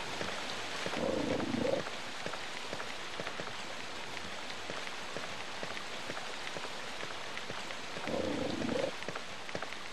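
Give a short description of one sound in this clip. A dog snarls in short bursts.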